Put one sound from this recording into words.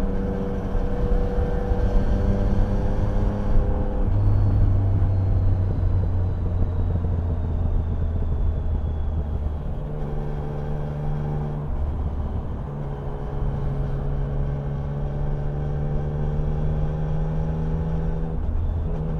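Wind rushes past loudly at highway speed.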